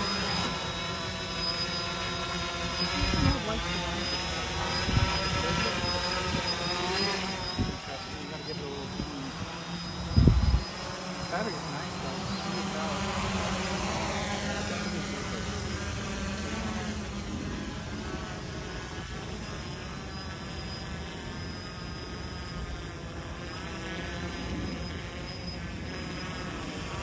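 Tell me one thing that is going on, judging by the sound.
A drone's propellers whine with a steady, shifting buzz.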